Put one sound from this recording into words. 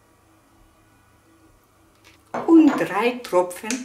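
A small glass bottle is set down on a table with a light clack.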